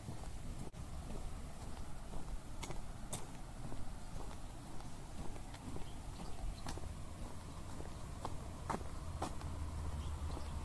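Footsteps scuff slowly on a paved road.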